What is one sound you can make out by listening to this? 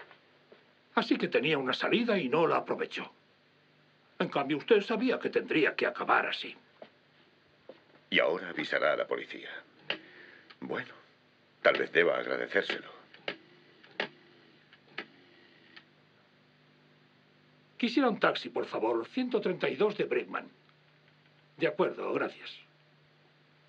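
An elderly man speaks firmly into a telephone.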